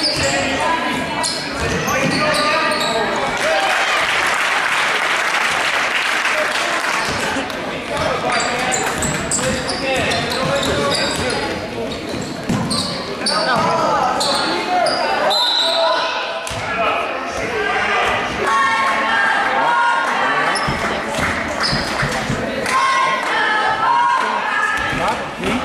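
A crowd of spectators cheers and shouts with echo.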